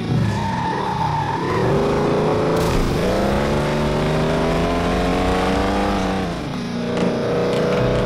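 A truck engine roars and revs up and down.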